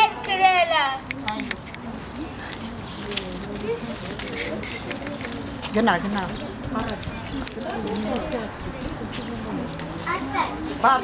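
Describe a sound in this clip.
Adults chat nearby in the open air.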